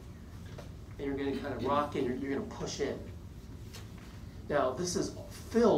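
A man speaks calmly to a room.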